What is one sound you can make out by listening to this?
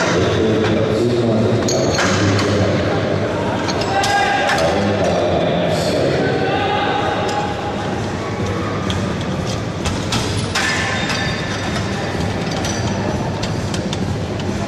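Men call out in a large echoing hall.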